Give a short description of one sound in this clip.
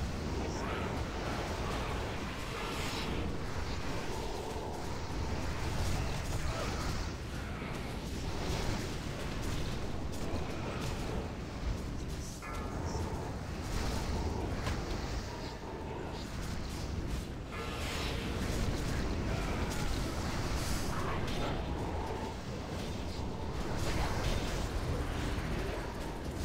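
Magic spells whoosh and crackle in a noisy fantasy battle.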